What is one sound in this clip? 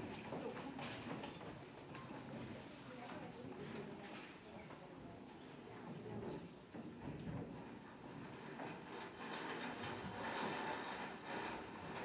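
A crowd of children murmurs and chatters.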